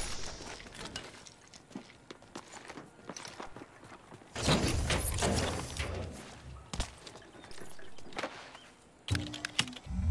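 Footsteps run quickly over grass and hard floor.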